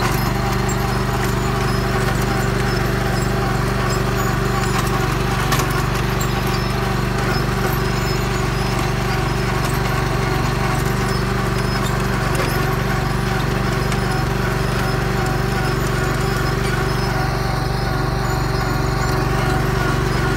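A planting machine rattles and clatters as it rolls over soil.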